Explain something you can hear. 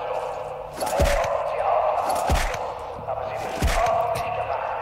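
A gun fires three loud shots at close range.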